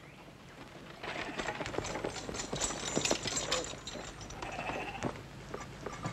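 A horse-drawn cart rattles past.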